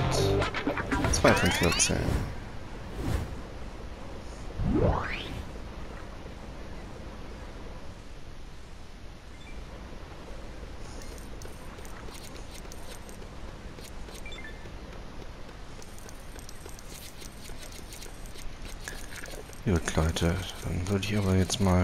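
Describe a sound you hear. Bright chimes jingle as coins are picked up.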